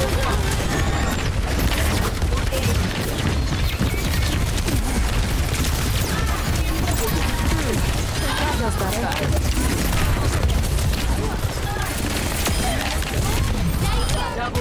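Video game energy blasts whoosh and crackle.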